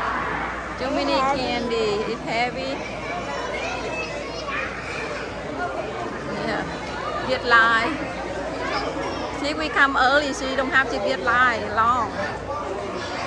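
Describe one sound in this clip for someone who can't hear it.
Children call out and laugh nearby.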